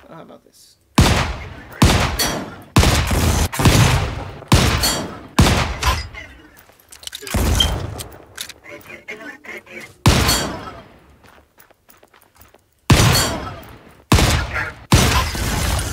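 A pistol fires loud shots in quick bursts, each shot echoing away.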